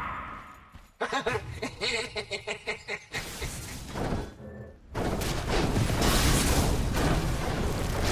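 Weapons clash in a game fight.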